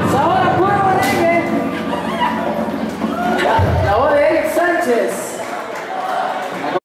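A man sings through a microphone over a loudspeaker system.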